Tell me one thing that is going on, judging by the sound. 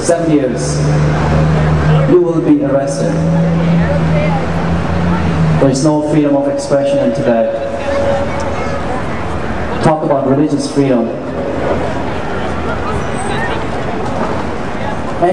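A man sings loudly into a microphone through loudspeakers outdoors, holding long notes.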